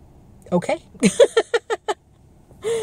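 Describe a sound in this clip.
A woman laughs.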